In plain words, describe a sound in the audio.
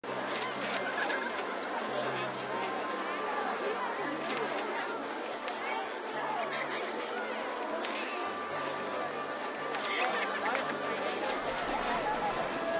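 A roller coaster train clatters along its track.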